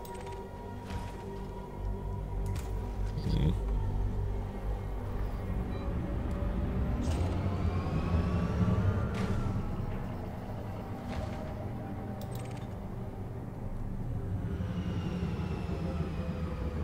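A spaceship engine hums with a deep, steady drone.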